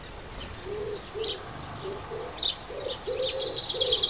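Small birds twitter in a busy, rapid chatter.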